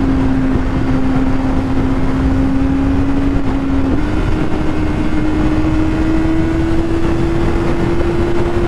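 Wind roars loudly past the rider.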